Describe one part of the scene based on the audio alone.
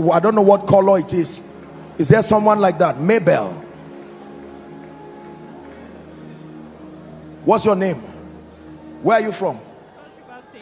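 A man preaches forcefully through a microphone in a large echoing hall.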